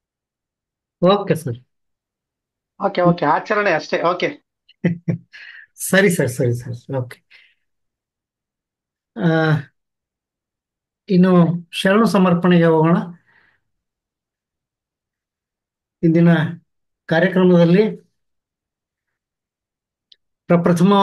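A middle-aged man speaks calmly through an online call, in short phrases with pauses.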